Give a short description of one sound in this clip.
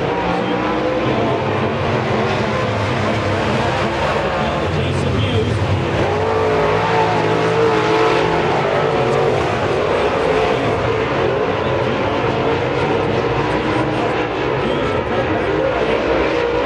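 Race car engines roar loudly as they speed past.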